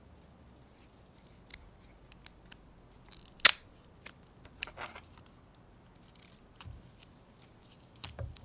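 Sticky tape crackles as it is peeled from a roll.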